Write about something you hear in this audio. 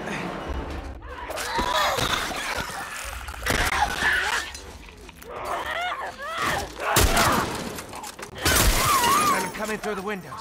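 A creature shrieks and screeches close by.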